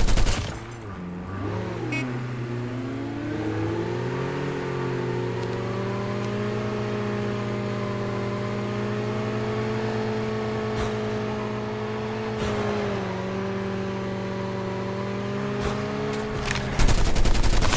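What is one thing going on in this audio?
A motorcycle engine hums steadily and revs.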